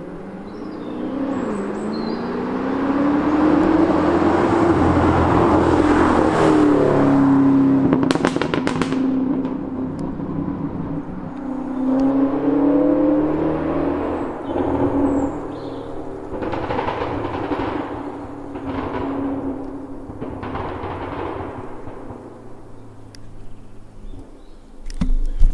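A sports car engine roars loudly as the car speeds past, rising and falling in pitch as it shifts gears.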